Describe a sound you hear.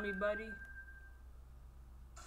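An ocarina plays a short melody.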